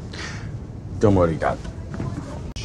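A young man speaks politely.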